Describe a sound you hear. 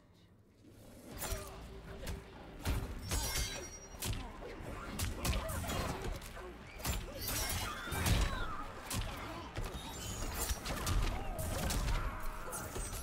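Fighting game punches and kicks land with sharp impacts.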